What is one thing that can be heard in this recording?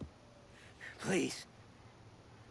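A young man pleads in a strained voice.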